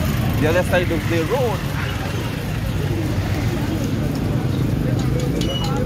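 A motorbike engine idles with a steady low rumble.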